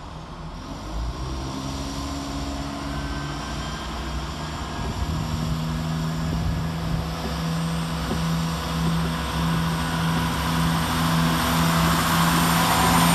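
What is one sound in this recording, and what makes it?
Train wheels rumble and clatter over the rails, growing louder.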